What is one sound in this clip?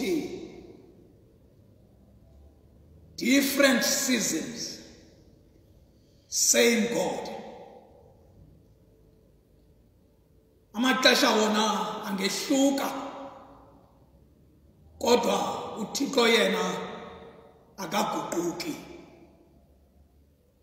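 A man preaches into a microphone in bursts with pauses, his voice echoing in a large hall.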